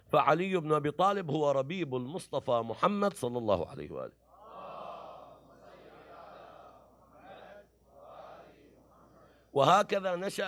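A man speaks with emotion into a microphone.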